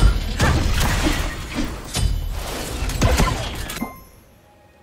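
Video game combat effects clash, whoosh and crackle in quick bursts.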